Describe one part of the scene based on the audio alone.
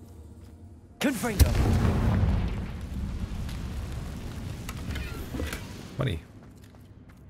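A burst of fire roars and crackles loudly, then dies away.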